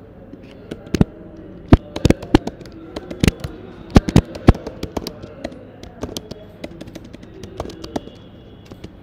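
Keyboard keys clack in quick bursts.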